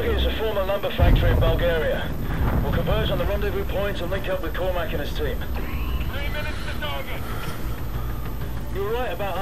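A helicopter's rotors thump and its engine roars as it flies close by.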